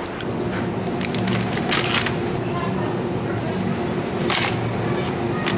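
Plastic food packages rustle and crinkle as they are dropped into a plastic basket.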